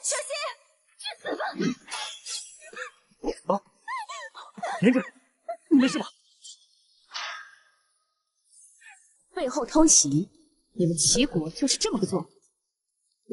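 A young woman speaks with distress, close by.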